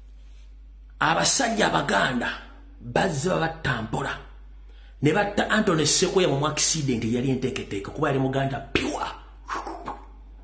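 A man speaks loudly and with animation into a close microphone.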